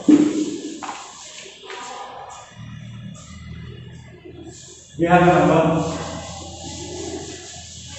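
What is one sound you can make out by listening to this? Chalk taps and scrapes on a board.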